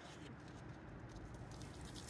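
Leaves rustle as a gloved hand handles them.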